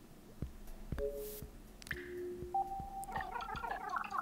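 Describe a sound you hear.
A short electronic chime plays.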